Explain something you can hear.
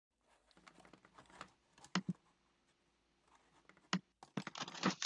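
A cardboard box rustles and knocks as it is handled.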